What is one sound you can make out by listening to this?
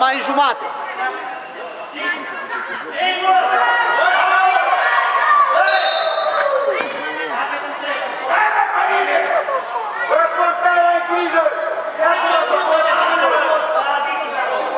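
Children shout and cheer excitedly in a large echoing hall.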